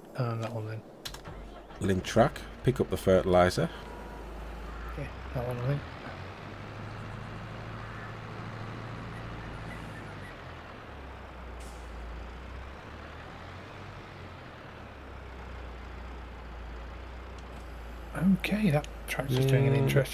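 A tractor engine idles and rumbles steadily.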